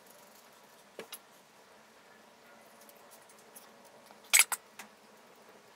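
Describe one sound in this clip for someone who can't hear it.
Metal parts clink and tap.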